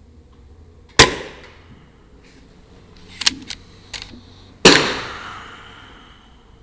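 An air rifle fires with a sharp crack that rings out in an echoing room.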